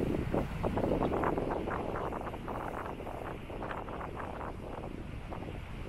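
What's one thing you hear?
Waves splash against rocks below.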